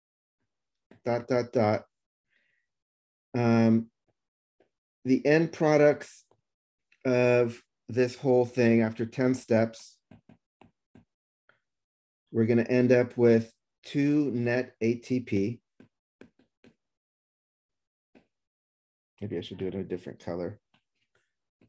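A man speaks calmly into a close microphone, explaining in short phrases with pauses.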